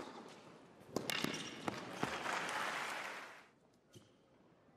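A crowd applauds in an indoor arena.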